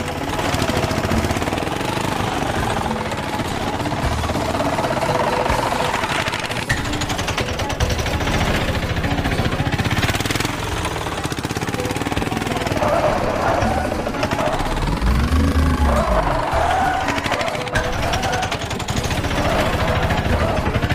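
A small motor engine hums steadily.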